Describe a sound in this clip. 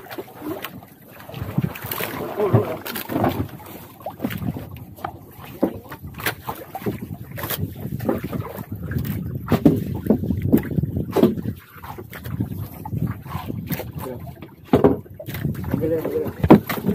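Wind gusts across the microphone outdoors.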